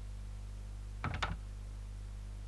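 A door handle rattles.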